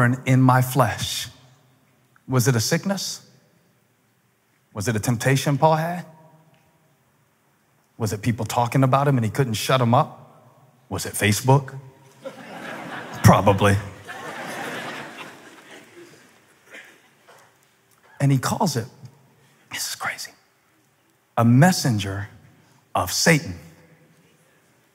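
A man speaks with emphasis into a microphone, in short bursts with pauses, in a large hall.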